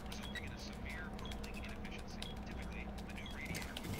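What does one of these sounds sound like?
Fingers tap on the buttons of an electronic device.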